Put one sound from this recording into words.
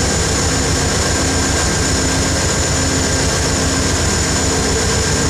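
A train's wheels rumble over the rails.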